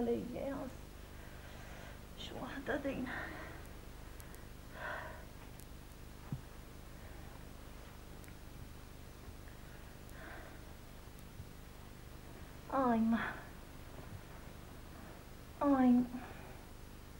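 A man groans and moans nearby.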